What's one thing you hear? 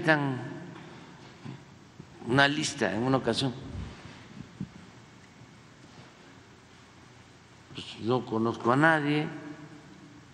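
An elderly man speaks slowly into a microphone in a large echoing hall, with long pauses.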